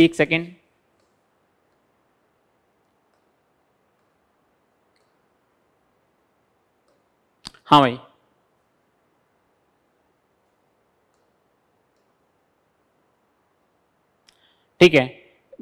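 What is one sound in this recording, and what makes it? A man speaks calmly into a close microphone, in short bursts.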